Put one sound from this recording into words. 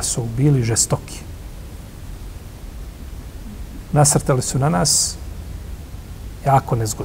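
An older man speaks calmly into a close microphone, in short phrases with pauses.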